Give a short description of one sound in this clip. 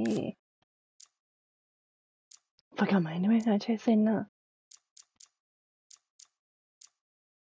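Short soft interface clicks tick now and then.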